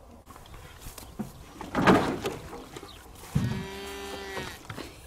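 Plastic containers clunk and knock together.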